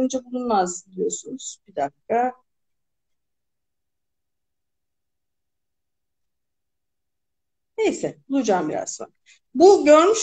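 A woman reads aloud expressively through an online call.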